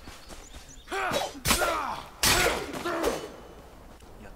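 A blade strikes with sharp, heavy hits.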